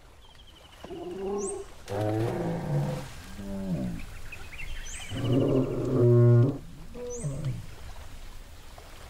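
A large animal bellows and groans with deep, rumbling calls.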